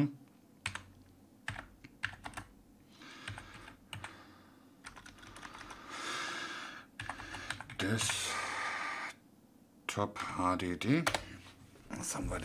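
Computer keys click.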